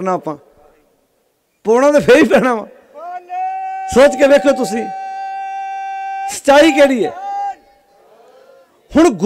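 A man speaks with animation into a microphone, his voice amplified over loudspeakers.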